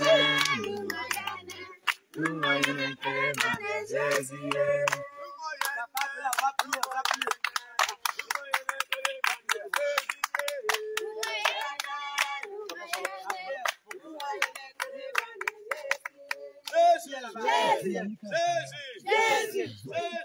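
A group of women sing together loudly outdoors.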